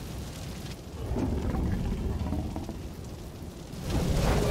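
A monster growls deeply.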